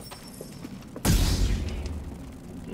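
A lightsaber ignites with a sudden loud whoosh.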